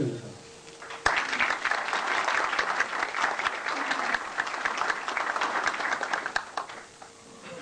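Hands clap in loud applause.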